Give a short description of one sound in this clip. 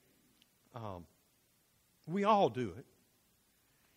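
A man speaks calmly through a microphone, in short phrases.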